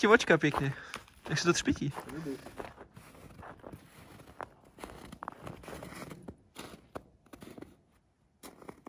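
A shovel scrapes across packed snow.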